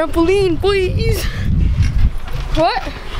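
A boy talks excitedly close to the microphone.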